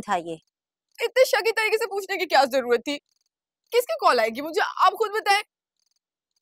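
A young woman answers with animation, close by.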